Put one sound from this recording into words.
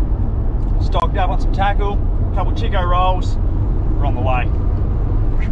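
A young man talks calmly up close.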